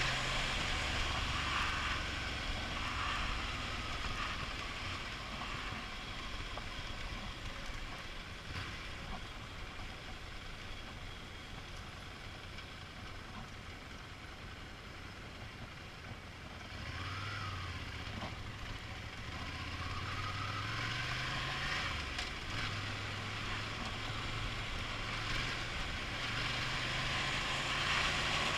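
A motorcycle engine hums steadily, rising and falling in pitch.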